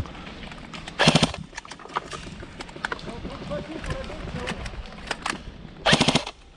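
Rifle shots ring out sharply in the woods.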